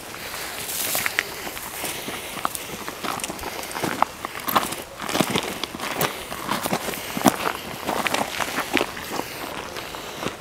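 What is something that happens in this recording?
Footsteps crunch through dry grass and twigs.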